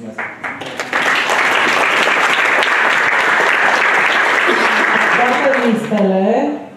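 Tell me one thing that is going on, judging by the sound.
A large audience applauds and cheers loudly.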